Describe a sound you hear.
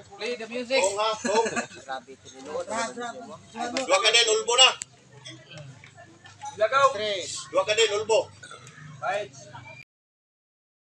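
Men talk with animation close by, outdoors.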